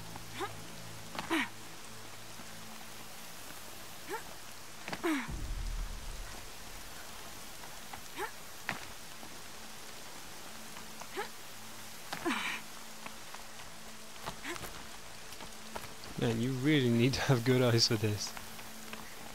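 A climber's hands and boots scrape and thud against rock in short bursts.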